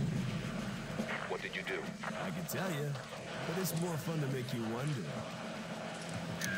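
A young man speaks casually into a microphone nearby.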